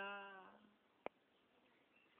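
A metal pot clinks against the ground.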